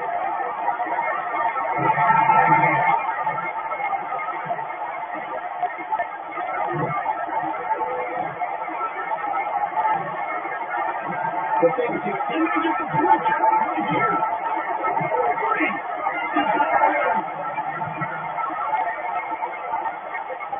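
A crowd roars steadily through a television speaker.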